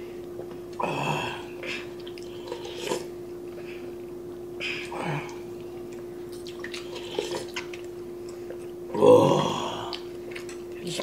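A man slurps noodles loudly up close.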